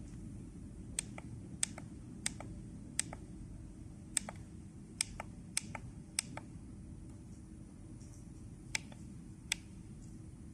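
Small plastic button clicks sharply, several times in a row.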